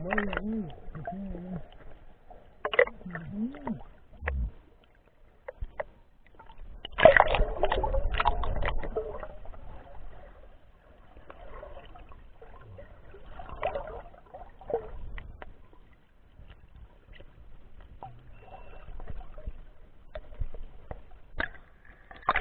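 Water gurgles and bubbles underwater.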